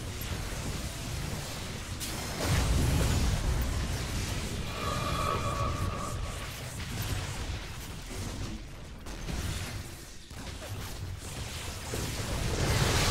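Game battle effects blast and crackle.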